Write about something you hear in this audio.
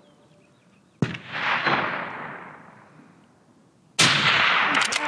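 A rifle fires a loud shot that echoes across open country.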